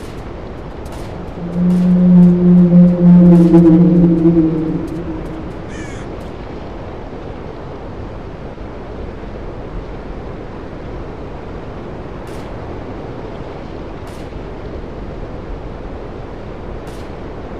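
Wind blows steadily through a forest.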